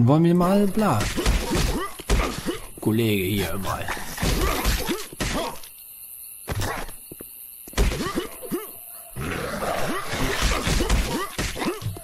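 Blows swish and thud in a fight, with sharp hits.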